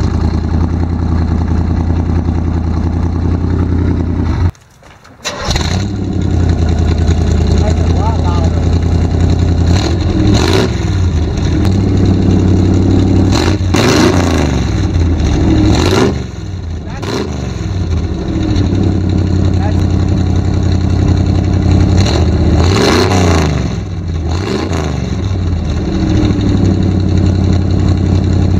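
A truck engine idles with a deep, loud exhaust rumble close by.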